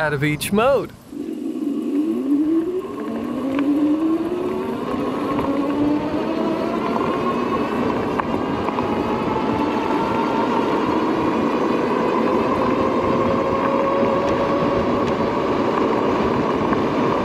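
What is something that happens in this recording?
Wind rushes loudly past, growing stronger with speed.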